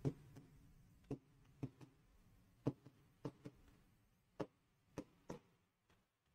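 A marker taps against a board.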